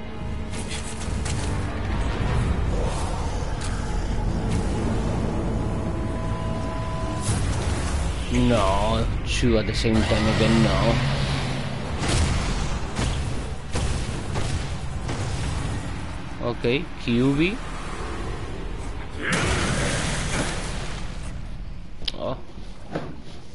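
Blades clash and heavy blows land in a fierce fight.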